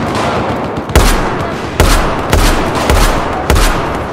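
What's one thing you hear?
A rifle fires several loud, sharp shots.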